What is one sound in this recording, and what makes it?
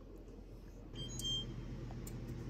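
An oven beeps once.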